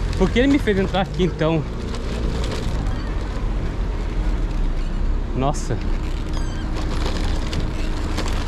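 A motor scooter engine hums steadily while riding.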